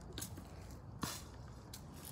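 A golf club taps a ball on grass.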